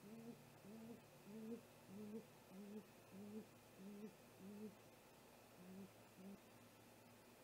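An owl hoots in a quick, steady series of low calls that then stops.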